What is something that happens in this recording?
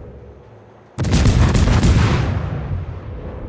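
Heavy naval guns fire a loud, booming salvo.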